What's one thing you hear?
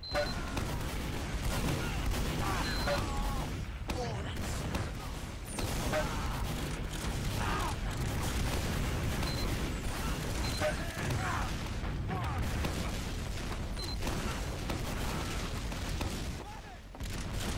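A rapid-fire gun whirs and fires in long bursts.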